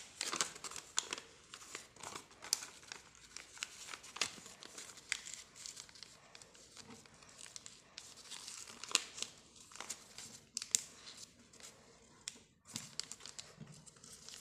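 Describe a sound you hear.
Paper rustles and crinkles as it is folded by hand.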